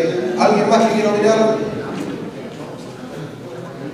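A middle-aged man speaks forcefully into a microphone in an echoing room.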